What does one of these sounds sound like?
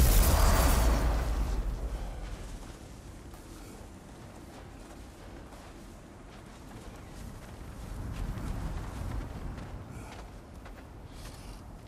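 Heavy footsteps crunch through snow.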